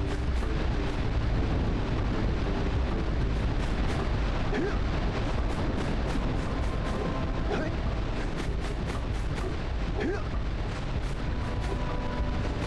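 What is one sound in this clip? A waterfall roars steadily.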